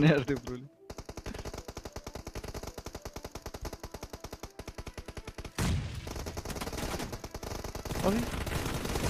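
Gunfire rattles in rapid, steady bursts.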